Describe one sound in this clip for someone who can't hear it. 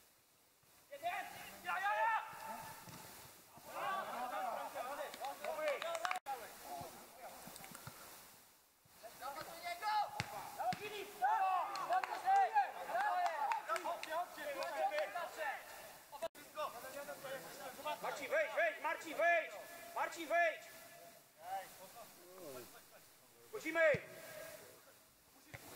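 Men shout and call out across an open outdoor field.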